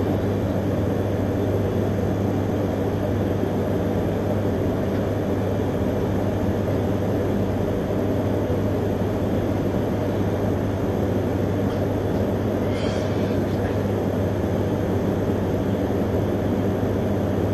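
A train rumbles and hums steadily as it rolls along.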